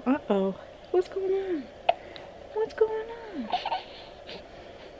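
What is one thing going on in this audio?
A baby coos.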